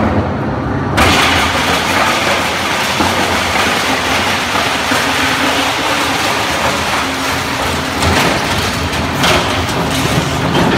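Plastic pieces crack and crunch as a shredder grinds them.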